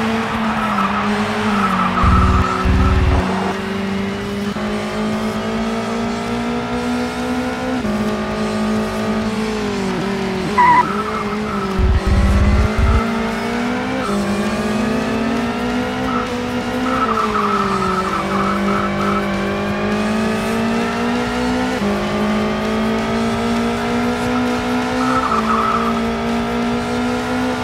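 A race car engine roars steadily, its pitch climbing and dropping as the gears shift.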